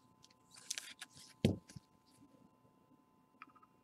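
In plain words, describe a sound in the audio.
A card slides and clicks against a plastic case.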